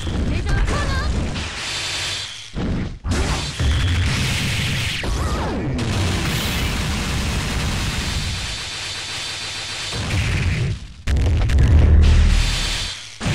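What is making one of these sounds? Rapid punches and kicks land with heavy, crunching thuds.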